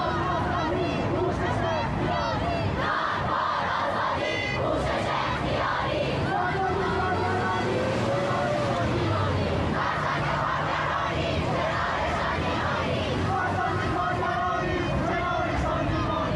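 A large crowd of young people chants slogans loudly in unison outdoors.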